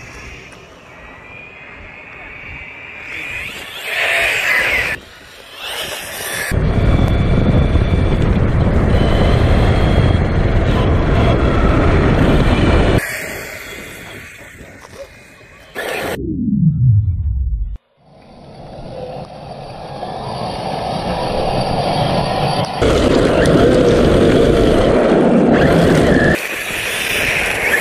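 A toy car's electric motor whines at high speed.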